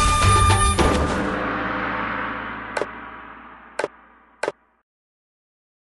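A short game fanfare rings out and slowly fades.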